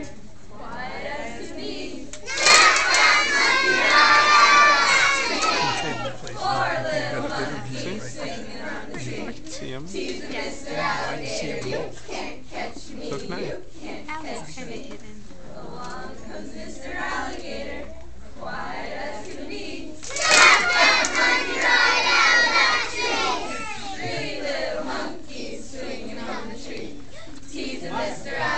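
Women sing along with the children, leading the song.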